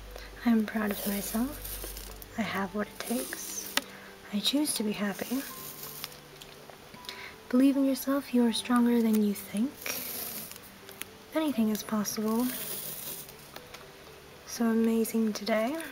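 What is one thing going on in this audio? A roll of sticker tape peels and crackles as it unrolls.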